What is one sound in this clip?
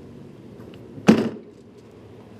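A storage hatch on a vehicle clunks shut.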